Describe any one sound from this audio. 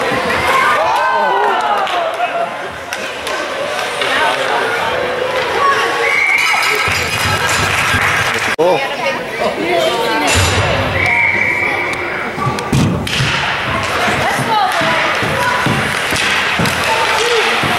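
Spectators cheer and chatter loudly in a large echoing rink.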